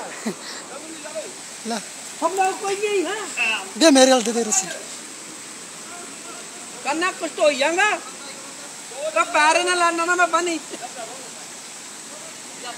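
A fast river rushes and churns.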